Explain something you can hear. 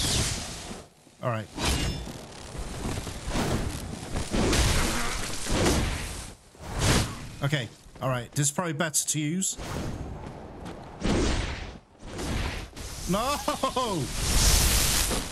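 Electricity crackles and zaps from a glowing spark.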